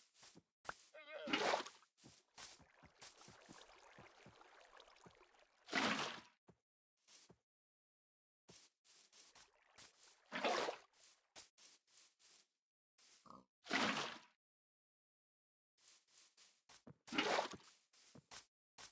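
Water sloshes and splashes as a bucket is filled and emptied.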